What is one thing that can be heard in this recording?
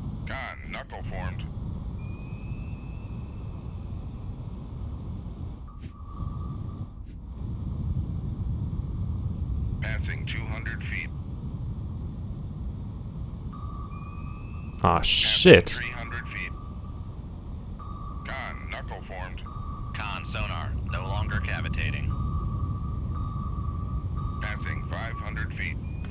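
A deep underwater rumble drones steadily.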